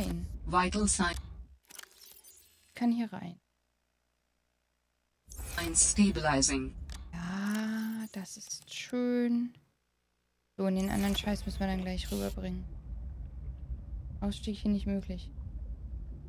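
A young woman talks casually into a close microphone.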